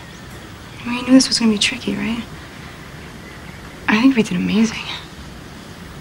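A young man speaks softly and calmly, close by.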